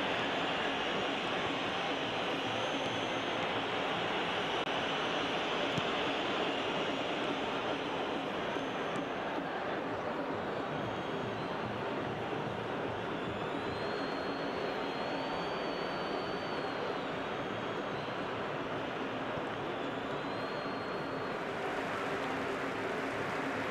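A large stadium crowd roars and murmurs steadily.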